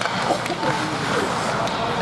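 A woman claps her hands nearby.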